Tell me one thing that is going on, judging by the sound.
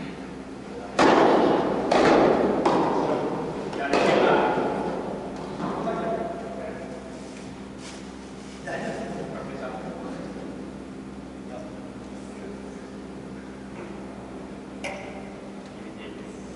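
Tennis balls are struck with rackets, echoing in a large hall.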